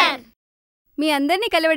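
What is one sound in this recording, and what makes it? A woman speaks calmly from across a room.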